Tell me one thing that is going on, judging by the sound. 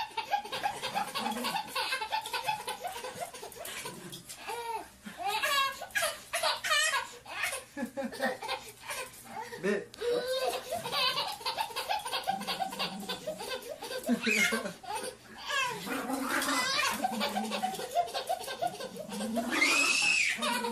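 A baby giggles and squeals with delight close by.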